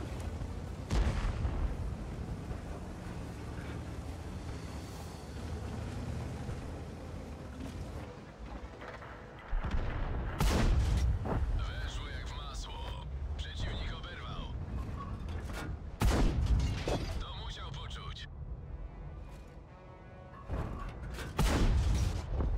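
A tank cannon fires with loud booms.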